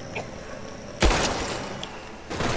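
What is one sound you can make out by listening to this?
A wooden crate crashes to the ground with a loud thud.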